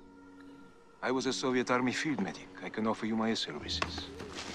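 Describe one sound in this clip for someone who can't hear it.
A man speaks tensely through a speaker.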